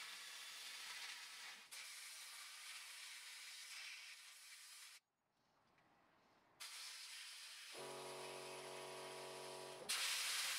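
A sandblaster nozzle blasts grit with a loud, steady hiss that briefly stops.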